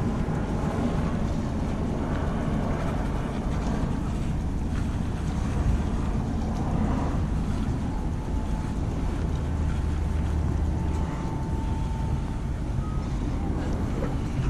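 Footsteps tap on a wooden pier.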